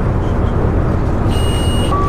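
A car passes close by the bus.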